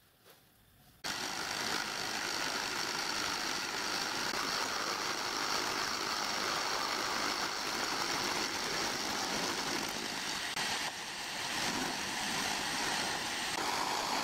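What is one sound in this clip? An end mill grinds steadily through steel.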